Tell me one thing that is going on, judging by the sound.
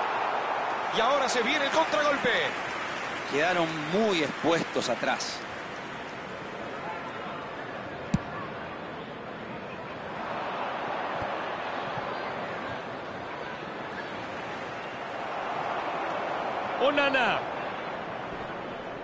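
A stadium crowd roars and murmurs steadily, swelling at times.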